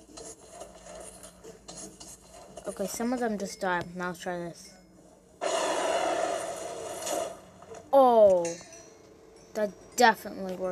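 A young girl talks with animation close to a phone microphone.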